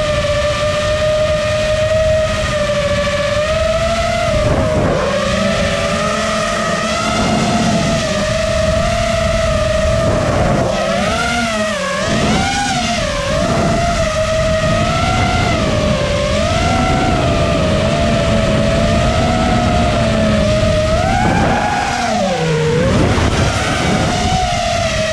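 The motors of an FPV racing quadcopter whine, rising and falling in pitch with the throttle.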